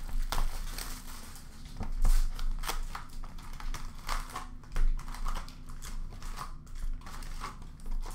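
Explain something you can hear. Plastic wrap crinkles and tears.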